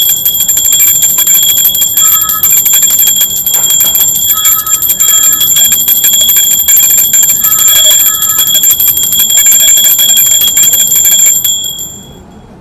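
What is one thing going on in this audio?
A small hand bell rings rapidly and steadily, then stops.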